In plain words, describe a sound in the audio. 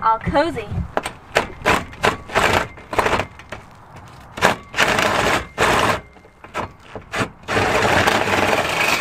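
A cordless impact driver whirs and rattles in short bursts.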